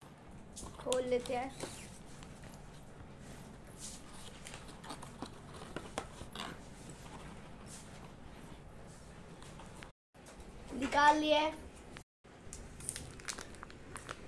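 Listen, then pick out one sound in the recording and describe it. A plastic snack packet crinkles in a hand.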